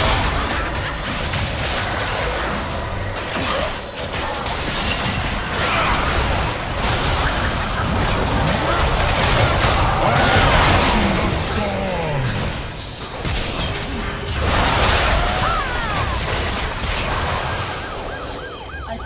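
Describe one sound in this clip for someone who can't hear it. Spell blasts, hits and explosions from a battle game crackle and boom rapidly.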